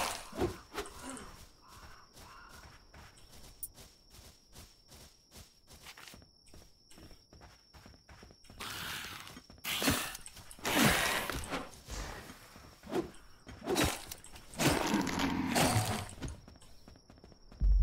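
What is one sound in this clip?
A sword swishes and strikes repeatedly in a fight.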